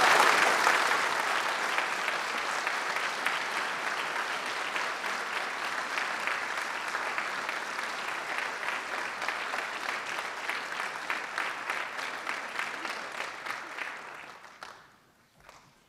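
An audience applauds loudly in a large echoing hall, then the clapping fades away.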